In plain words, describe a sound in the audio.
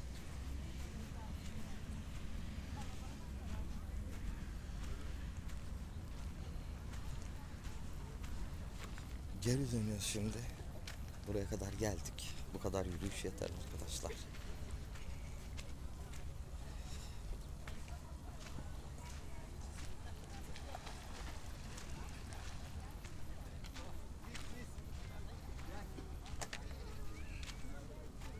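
Small waves lap gently against a stony shore.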